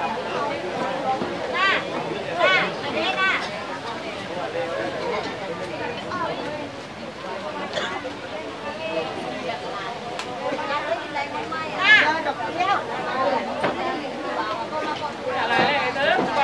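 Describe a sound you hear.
A middle-aged woman speaks excitedly, close by.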